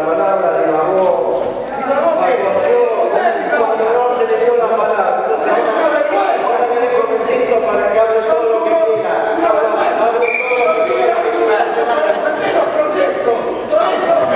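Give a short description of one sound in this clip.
A middle-aged man speaks loudly and with animation into a microphone in an echoing hall.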